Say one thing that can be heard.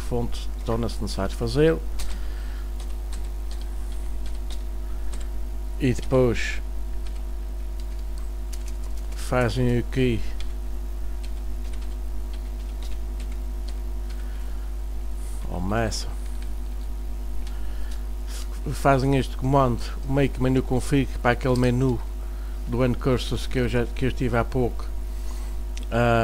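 A man speaks calmly and haltingly through a microphone, close by.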